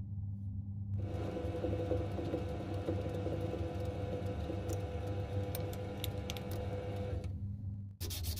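A lathe whirs loudly as it spins.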